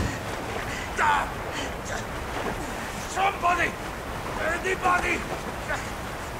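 A man shouts in distress, close by.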